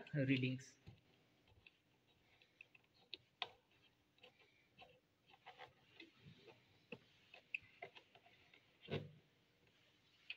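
Knobs on an electrical meter click softly as they are turned.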